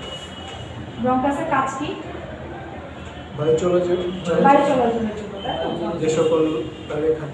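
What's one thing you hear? A young woman reads aloud nearby.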